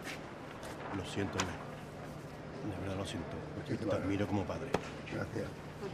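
A middle-aged man talks with animation nearby.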